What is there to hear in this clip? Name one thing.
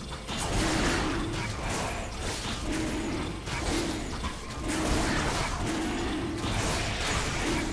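A video game dragon's attacks thump and crackle over and over.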